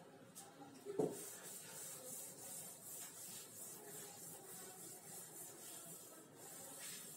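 A cloth rubs steadily across a chalkboard, wiping it clean.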